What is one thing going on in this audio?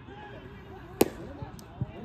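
A bat cracks sharply against a ball outdoors.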